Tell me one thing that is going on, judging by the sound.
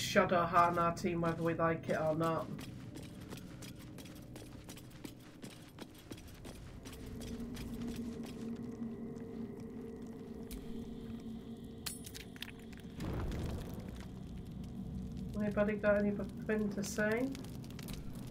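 A young woman talks into a close microphone.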